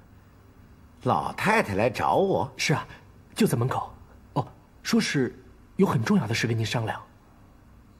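A young man answers calmly, close by.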